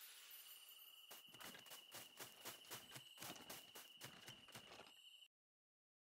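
Soft footsteps patter quickly.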